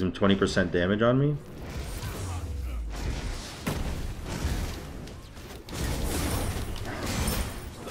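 Fighting sounds and clashing blows from a video game play.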